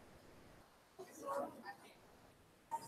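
A man speaks briefly from across a large room.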